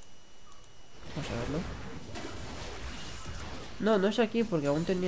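Magic spells whoosh and crackle in a video game battle.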